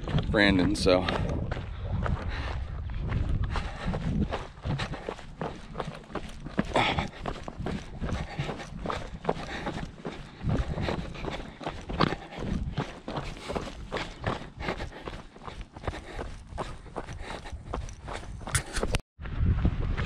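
Footsteps crunch and scrape on loose gravel.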